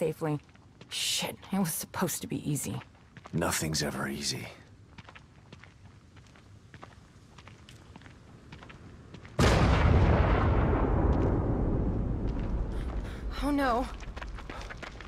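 A woman speaks quietly up close.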